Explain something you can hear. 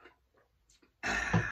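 A metal bottle is set down with a loud clunk.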